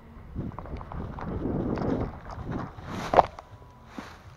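Dry grass rustles and crackles close by.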